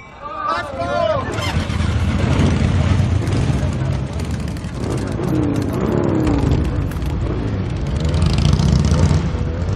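Motorcycle engines rumble loudly.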